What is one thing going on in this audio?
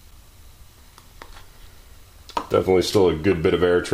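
Paper cups clink and tap as they are handled on a tabletop.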